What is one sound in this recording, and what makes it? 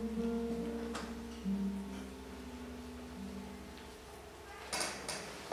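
Soft guitar notes ring out and fade.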